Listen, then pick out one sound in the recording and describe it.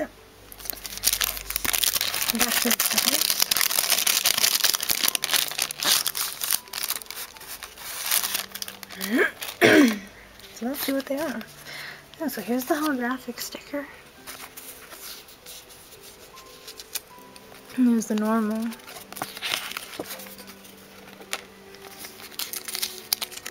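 Stickers and a plastic sleeve rustle and crinkle as they are handled close by.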